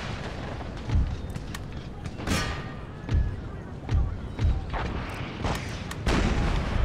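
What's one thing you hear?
Musket volleys crack and boom across an open field.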